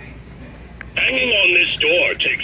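A toy bear talks loudly in a gruff voice through a small loudspeaker.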